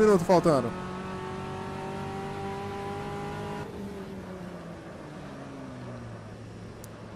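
A racing car engine drones steadily at speed.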